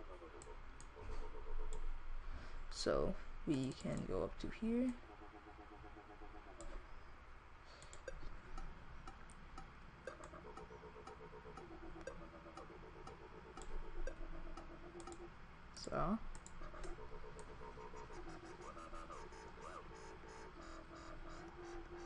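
A synthesizer plays short, buzzing electronic notes.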